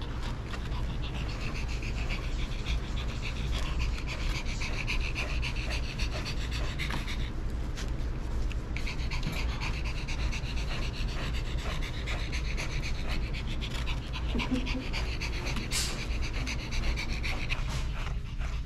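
A small dog pants quickly.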